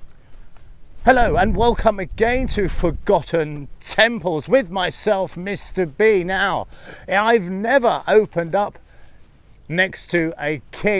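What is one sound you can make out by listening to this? A middle-aged man talks calmly and clearly into a clip-on microphone outdoors.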